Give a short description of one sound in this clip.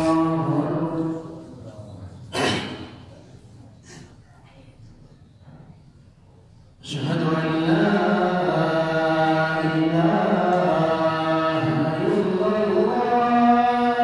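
A man chants a call in a long, melodic voice through a loudspeaker, echoing in a large room.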